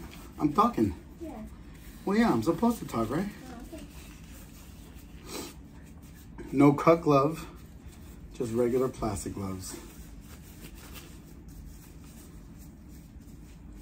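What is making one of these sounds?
Rubber gloves snap onto hands.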